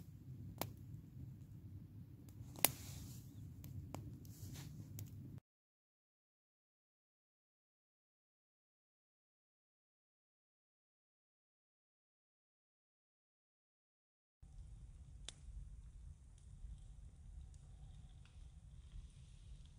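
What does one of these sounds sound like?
Flames roar softly in a fire.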